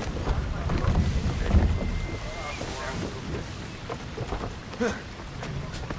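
Waves wash and splash against a wooden ship.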